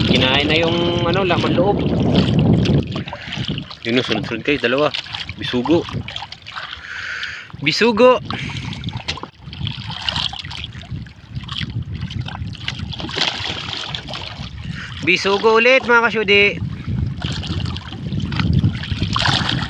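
Water laps and splashes against the side of a small boat.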